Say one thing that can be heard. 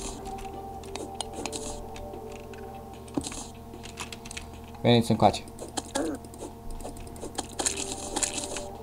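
Game music plays steadily throughout.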